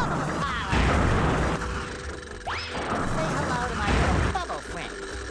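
Bubbles burst and fizz with splashy game effects.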